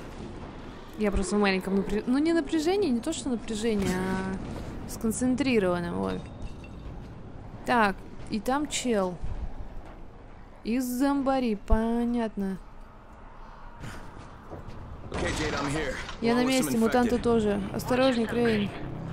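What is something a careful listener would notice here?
A young woman talks calmly into a close microphone.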